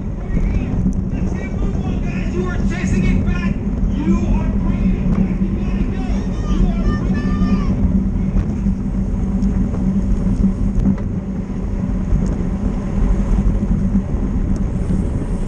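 Wind rushes and buffets steadily past a moving bicycle.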